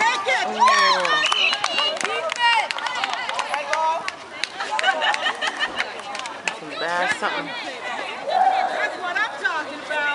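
Young girls shout and call out to each other outdoors.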